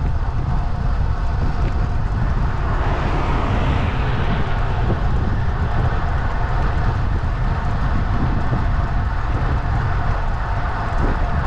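Wind rumbles and buffets steadily across the microphone outdoors.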